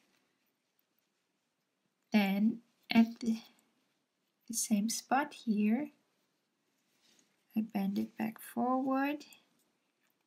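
Small metal pliers click softly against a needle.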